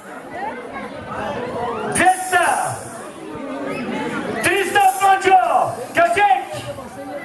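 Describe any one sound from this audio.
A man speaks with animation into a microphone, heard through loudspeakers outdoors.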